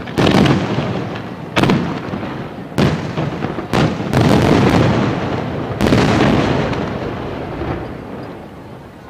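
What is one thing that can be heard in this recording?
Fireworks boom loudly outdoors, echoing and rumbling.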